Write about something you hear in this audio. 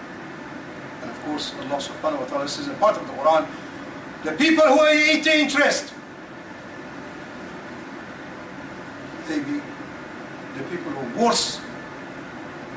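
An elderly man speaks with animation, with long pauses between phrases.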